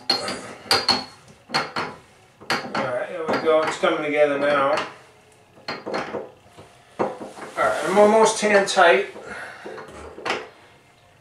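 Metal clinks and scrapes against a drain.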